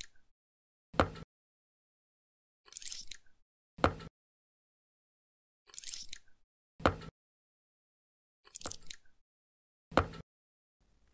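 A knife knocks sharply on a wooden board.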